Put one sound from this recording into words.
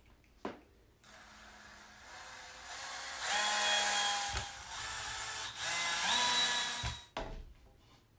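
A power drill whirs, driving a screw in.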